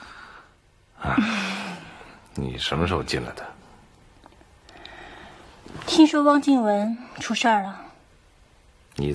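A young woman speaks softly and teasingly up close.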